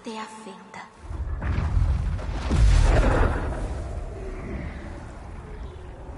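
A deep blast booms and rumbles, then slowly dies away.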